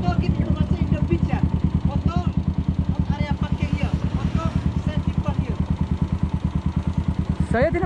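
A scooter engine idles nearby.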